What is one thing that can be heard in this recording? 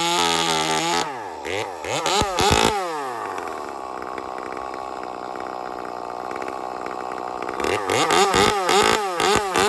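A chainsaw engine revs up and down loudly, close by.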